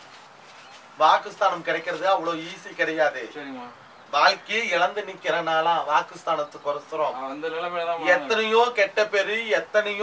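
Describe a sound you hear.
A middle-aged woman chants loudly and rhythmically close by.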